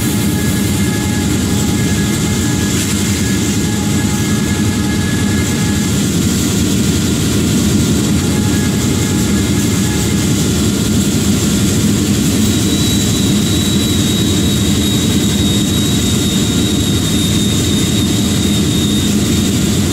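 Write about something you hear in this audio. A diesel locomotive engine rumbles steadily.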